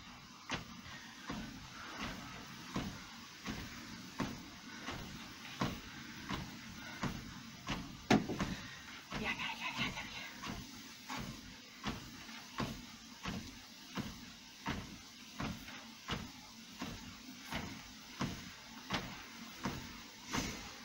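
Feet thud in a steady rhythm on a running treadmill.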